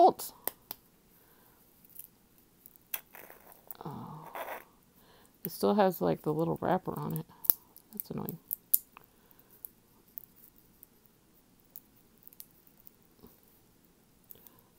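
A small jar clicks as hands turn it.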